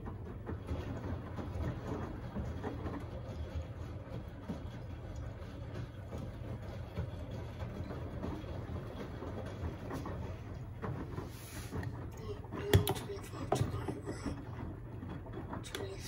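Water sloshes and splashes inside a washing machine as laundry tumbles.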